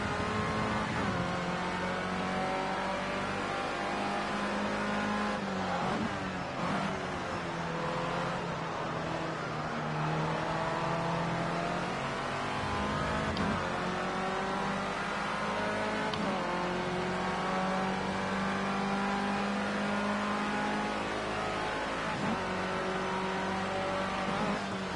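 A racing car engine whines loudly, rising in pitch and dropping sharply with each gear change.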